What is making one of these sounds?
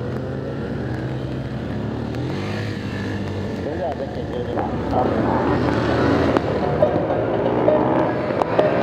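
A motorcycle engine revs and putters close by.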